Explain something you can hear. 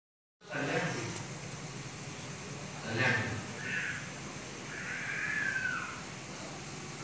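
An elderly man sings into a microphone, heard through a loudspeaker.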